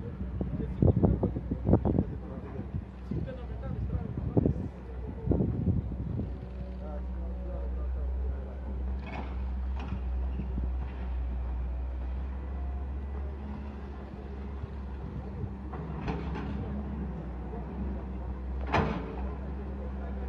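An excavator engine rumbles steadily in the distance.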